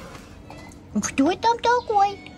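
A cat meows outdoors.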